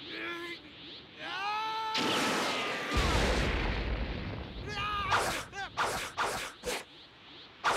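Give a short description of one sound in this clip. A blast of energy roars.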